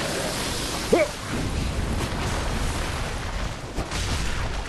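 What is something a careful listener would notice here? A blade swings and strikes a creature.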